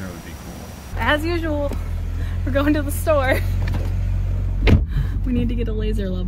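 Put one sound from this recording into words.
A young woman talks close by inside a car.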